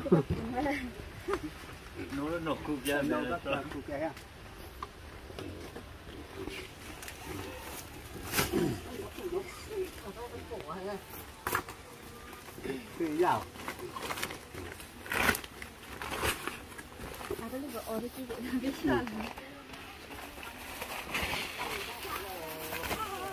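A woven plastic sack rustles as it is carried.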